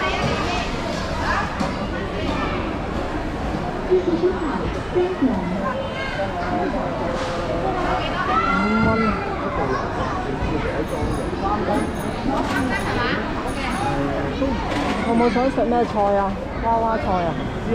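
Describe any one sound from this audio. A busy crowd of men and women chatters and calls out all around, heard close by.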